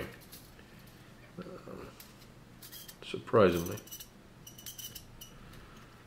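Small metal parts click and scrape together in hands.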